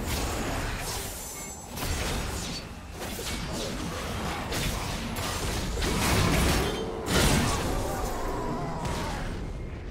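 Magic blasts and sword strikes burst out in quick, overlapping bursts.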